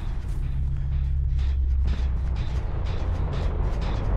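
Footsteps run over dry leaves and dirt.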